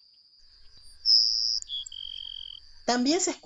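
A second small bird sings a high, buzzy, drawn-out song.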